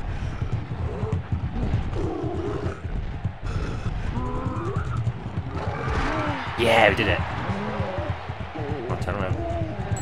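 A giant creature grunts and roars.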